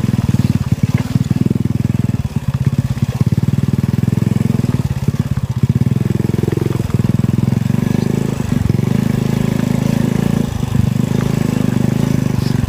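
A small motorbike engine putters steadily at close range.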